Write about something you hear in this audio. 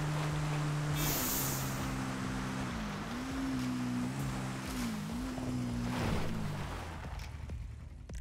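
Tyres crunch on a dirt track.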